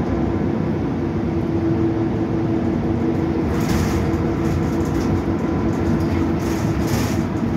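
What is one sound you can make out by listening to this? A bus engine hums and rumbles steadily while driving.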